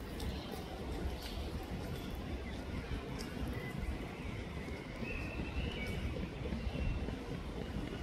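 A wild boar's hooves crunch on gravel as it walks.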